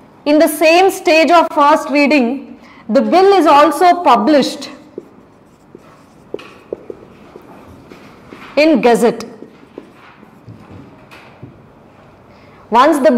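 A young woman speaks clearly into a microphone, in short bursts.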